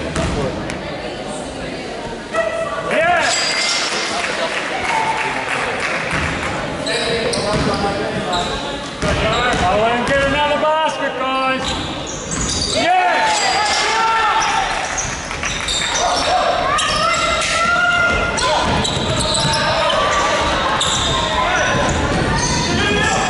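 Young men call out and shout to each other across the hall.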